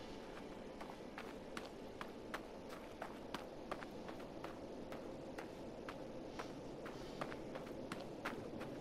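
Footsteps tap steadily on the ground.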